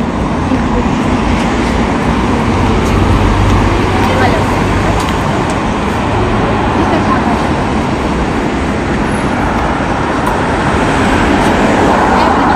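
Traffic rumbles steadily past outdoors.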